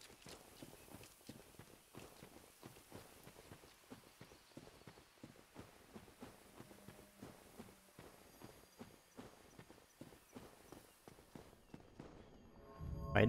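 Armoured footsteps run quickly over soft ground.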